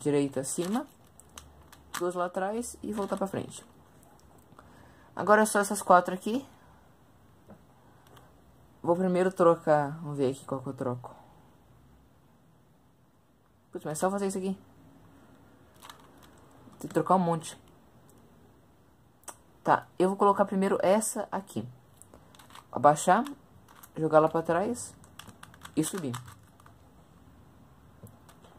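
A plastic puzzle cube clicks and rattles as its layers are turned quickly.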